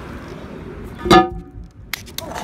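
A heavy metal lid clangs down onto its frame.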